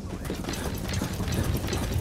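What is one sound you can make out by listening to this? Footsteps thud quickly on dirt.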